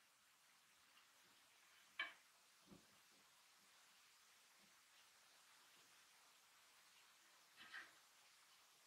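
Fingers tug and weave thread on a metal hoop, with faint rustles and sharp taps.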